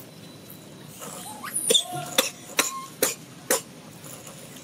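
Monkeys give sharp, chattering calls close by.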